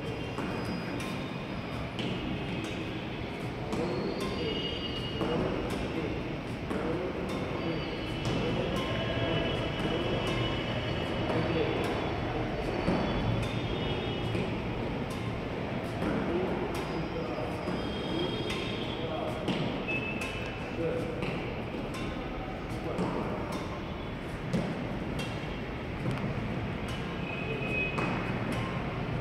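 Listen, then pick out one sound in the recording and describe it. A badminton racket repeatedly strikes a shuttlecock in an echoing hall.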